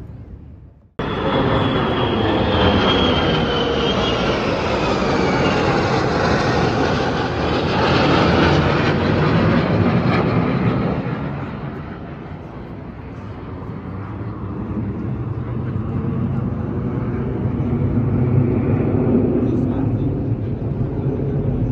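Fighter jets roar overhead, their pitch sliding down as they pass.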